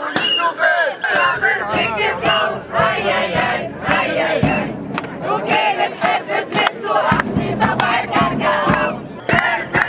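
A woman shouts chants with passion close by.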